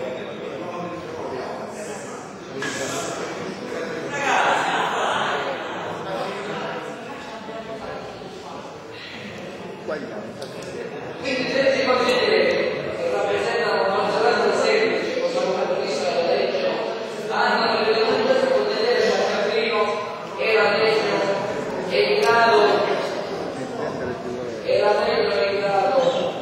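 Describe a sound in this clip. An elderly man speaks with animation into a microphone in a large echoing hall.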